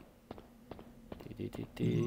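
Footsteps thud quickly on a stone floor.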